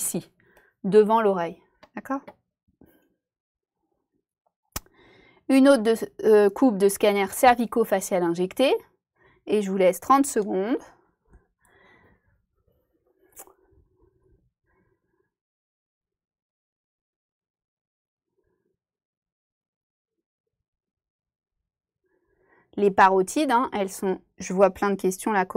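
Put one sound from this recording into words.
A young woman speaks calmly into a microphone, with long pauses.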